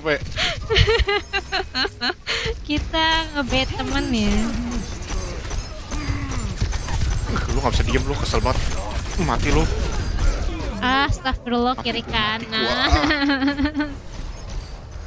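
Rapid gunfire and blasts from a video game ring out.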